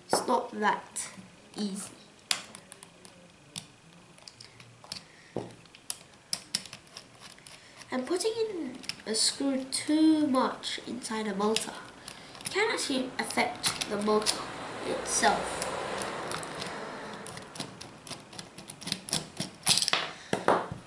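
Plastic parts click and knock as they are handled.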